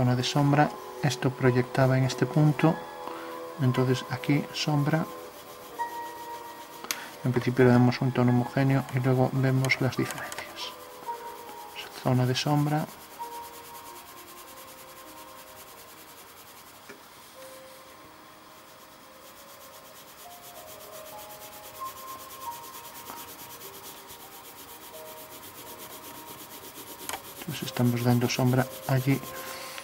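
A pencil scratches softly across paper.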